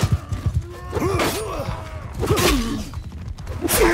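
Metal weapons clash and strike shields close by.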